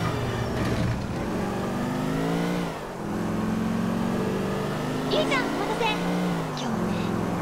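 A car engine revs, rising and dropping in pitch as the car speeds along.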